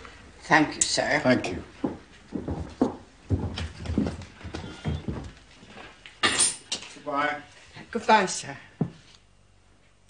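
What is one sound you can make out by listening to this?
A woman answers politely.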